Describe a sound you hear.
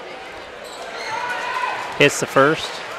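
A crowd cheers briefly.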